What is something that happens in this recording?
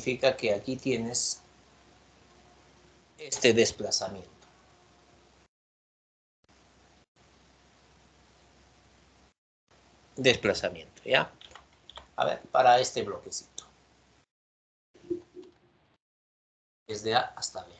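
A man speaks calmly into a microphone, as if explaining, in short bursts with pauses.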